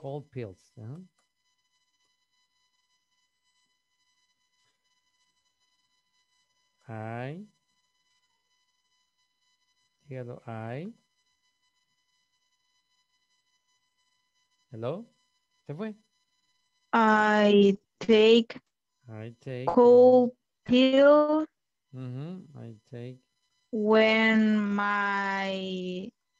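A young woman speaks slowly through an online call, with pauses.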